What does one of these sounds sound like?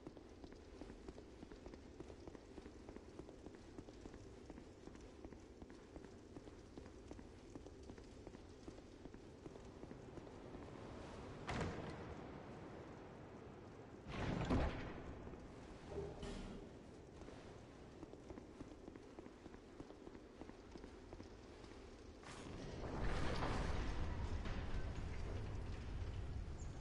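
Footsteps run quickly over stone.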